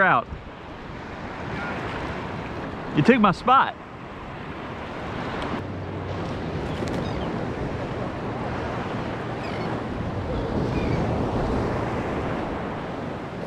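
Shallow sea water laps and swishes steadily close by.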